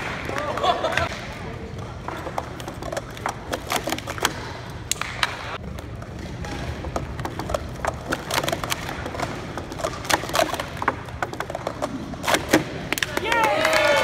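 Plastic cups clatter and click as they are quickly stacked and unstacked.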